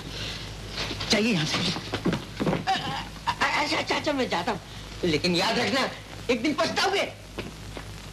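A man speaks urgently and pleadingly, close by.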